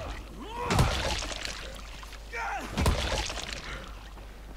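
Heavy blows strike flesh with wet, squelching thuds.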